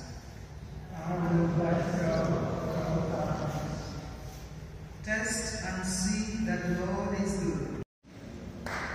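A woman reads aloud calmly through a microphone in a large echoing hall.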